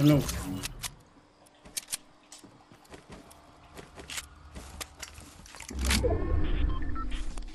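Wooden pieces snap into place with quick, sharp knocks.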